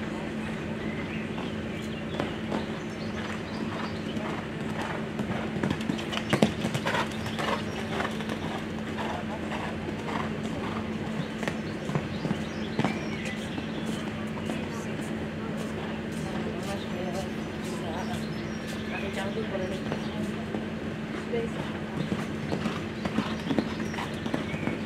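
A horse's hooves thud on sand at a canter.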